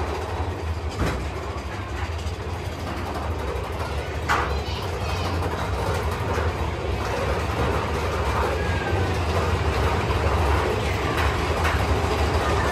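Metal parts of a ride car knock and rattle now and then.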